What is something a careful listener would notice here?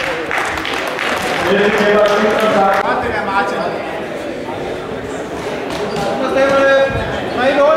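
An elderly man speaks firmly nearby in an echoing hall.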